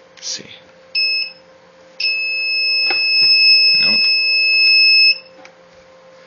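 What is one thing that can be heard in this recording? An electronic meter beeps shrilly, first briefly and then in a long tone.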